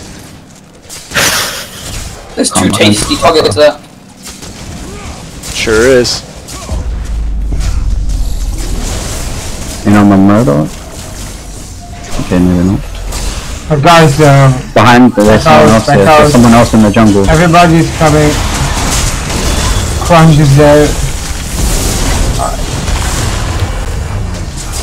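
Energy blasts zap and crackle in a fight.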